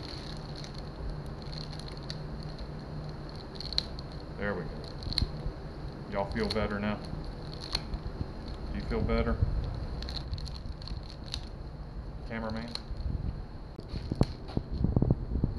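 Plastic crinkles and clicks close by.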